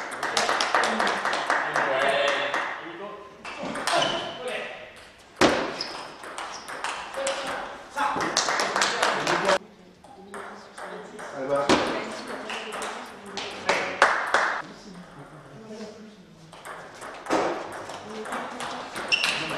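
A table tennis ball clicks back and forth off paddles and a table in an echoing hall.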